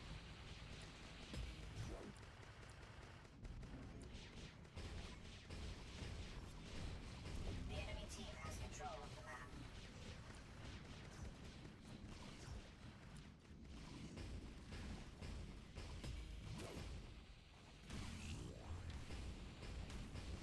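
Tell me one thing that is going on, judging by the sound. Sci-fi energy weapons fire in rapid bursts.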